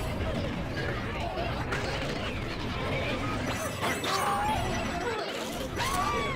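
Cartoon sound effects chirp and splat rapidly.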